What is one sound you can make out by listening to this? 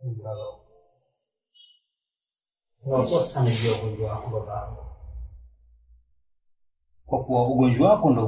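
A young man speaks quietly and earnestly up close.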